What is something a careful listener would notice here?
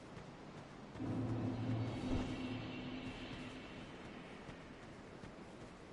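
A deep swelling musical tone sounds and slowly fades.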